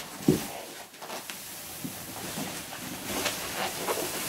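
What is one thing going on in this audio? Stuffed toys tumble out of a bag onto a carpet with soft thuds.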